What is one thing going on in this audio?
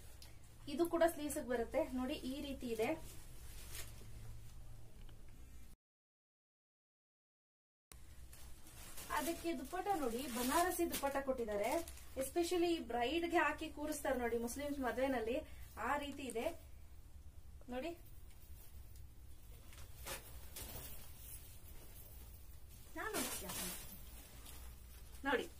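A young woman speaks calmly and clearly close by.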